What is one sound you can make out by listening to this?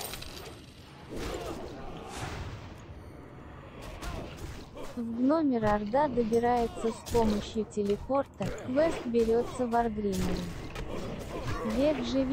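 Weapons clash and strike in a close fight.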